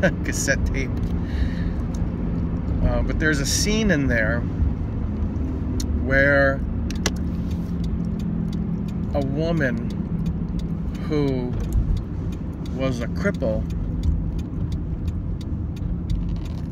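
A car engine hums steadily with road rumble.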